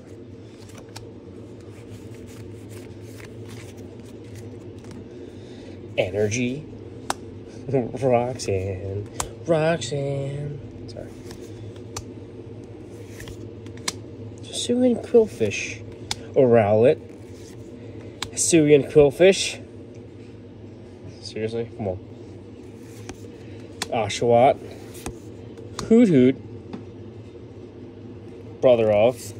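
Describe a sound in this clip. Trading cards softly rustle and slide against each other.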